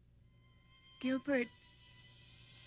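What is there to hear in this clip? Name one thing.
A young woman speaks briefly and cheerfully.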